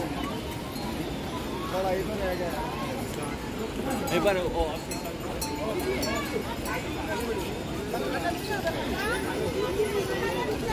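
A crowd of men and women chatters outdoors all around.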